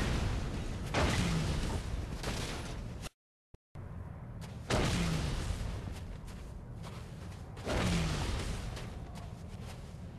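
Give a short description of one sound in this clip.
Heavy blasts thud and roar one after another.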